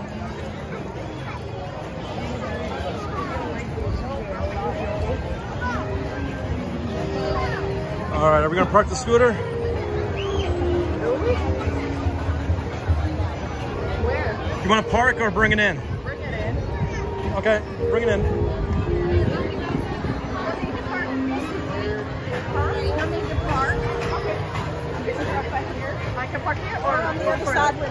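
A crowd chatters and murmurs outdoors all around.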